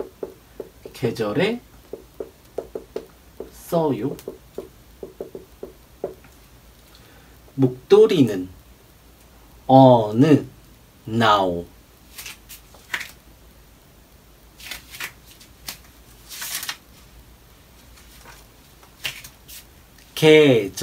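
A man speaks calmly and clearly up close, in short bursts with pauses.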